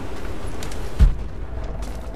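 An arrow thuds into a target.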